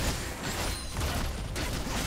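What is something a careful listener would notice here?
A fiery blast whooshes past.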